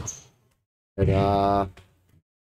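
A man shouts a long, drawn-out call.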